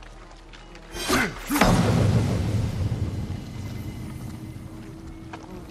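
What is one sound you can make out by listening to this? A large drum is struck with a deep, booming hit that rumbles away.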